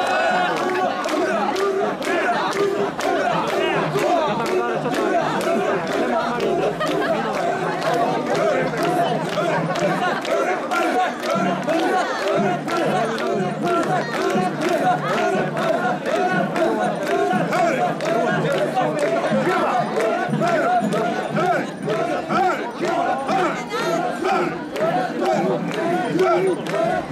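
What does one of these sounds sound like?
Many people clap their hands in rhythm.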